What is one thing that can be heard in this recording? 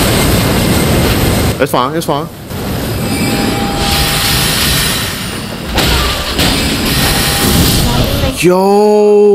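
A magical energy beam roars and crackles.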